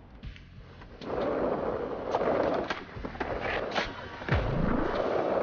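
Skateboard wheels roll on smooth pavement.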